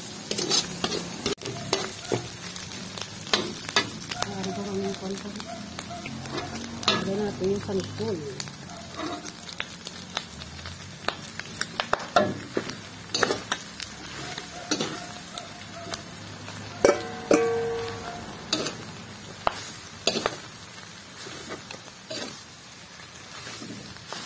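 A metal spatula scrapes and clinks against a metal wok, stirring dry grated coconut.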